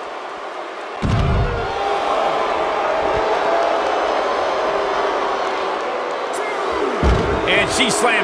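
A body slams hard onto the floor with a heavy thud.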